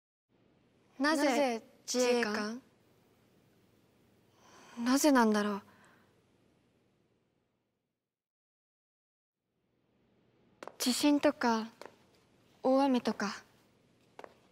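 A young woman speaks.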